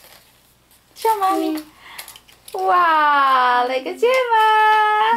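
A young girl speaks in a high, lively voice close by.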